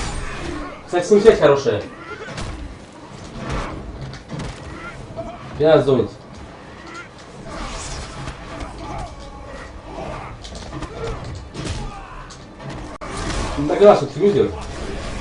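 A body thumps onto the floor.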